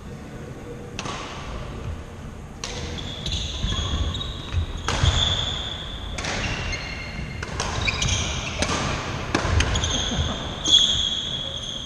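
Badminton rackets strike a shuttlecock back and forth, each hit ringing in a large echoing hall.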